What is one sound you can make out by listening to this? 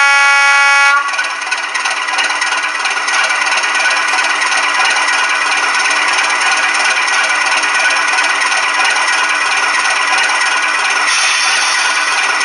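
A model diesel locomotive's engine idles with a steady, whirring rumble.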